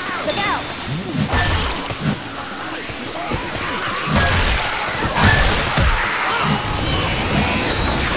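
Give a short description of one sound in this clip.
A zombie snarls and growls up close.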